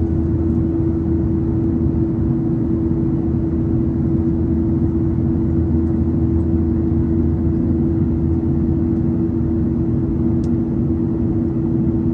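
An airliner's engines drone steadily with a low hum inside the cabin.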